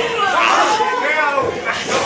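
A man shouts with excitement close by.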